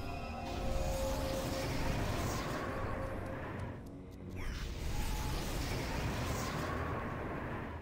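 Magic fire blasts roar and crackle.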